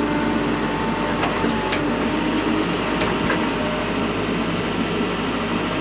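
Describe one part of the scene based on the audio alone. Metal sheets clatter and scrape as a digger bucket knocks them down.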